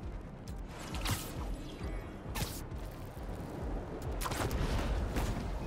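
A web line shoots out with a sharp whoosh.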